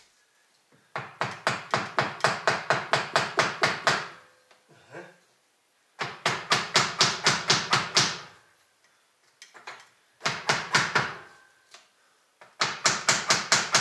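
A hand tool works in rapid bursts.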